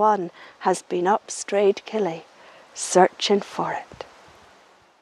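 An elderly woman talks calmly and warmly, close to a microphone.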